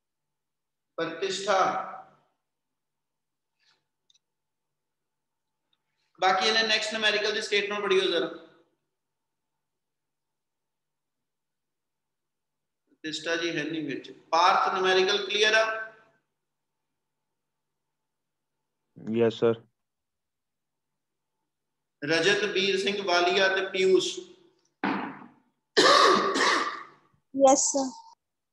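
A middle-aged man speaks calmly in short bursts with pauses, close to the microphone.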